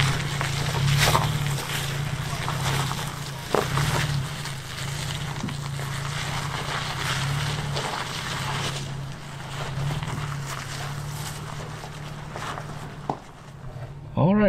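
A truck engine rumbles low as the truck crawls over rocks.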